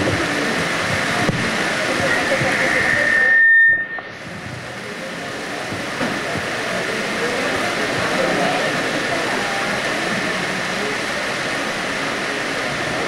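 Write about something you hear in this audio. A woman speaks steadily through a microphone and loudspeaker in an echoing hall.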